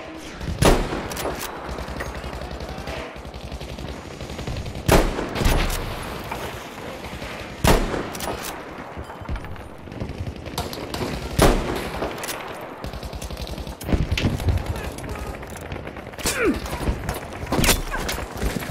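A rifle fires loud single shots, each followed by a short echo.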